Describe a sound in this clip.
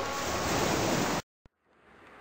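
Waves wash gently onto a rocky shore.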